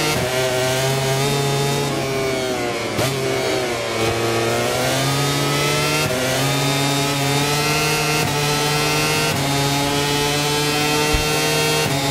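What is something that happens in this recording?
A racing motorcycle engine roars loudly, its pitch dropping as it slows and rising as it shifts up and speeds along.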